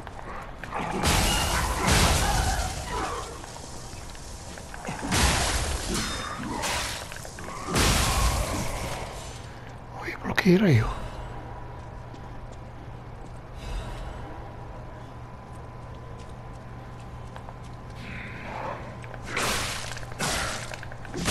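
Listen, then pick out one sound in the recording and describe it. Blades swing and strike in heavy whooshing blows.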